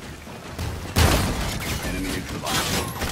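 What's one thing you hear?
A knife strikes with a sharp, heavy impact.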